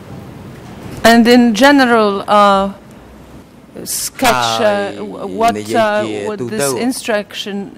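A middle-aged woman speaks firmly into a microphone.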